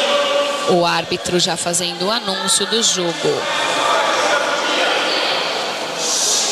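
A crowd murmurs in the background of a large echoing hall.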